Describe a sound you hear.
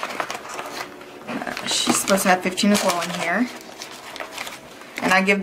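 Paper and plastic rustle and crinkle close by as they are handled.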